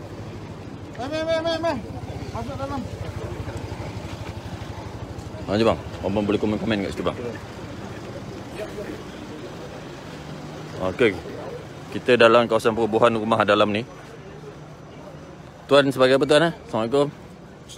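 A man speaks loudly with animation close by, outdoors.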